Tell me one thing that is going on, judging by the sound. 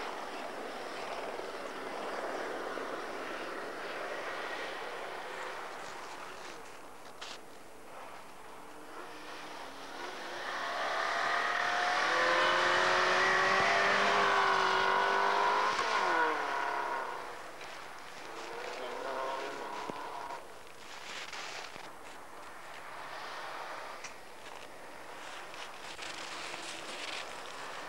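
A car engine revs hard and roars past.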